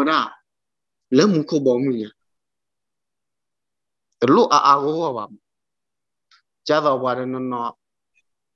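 A young man speaks slowly and clearly over an online call, pausing between phrases.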